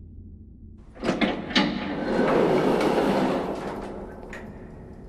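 Heavy doors slide open with a loud rushing whoosh.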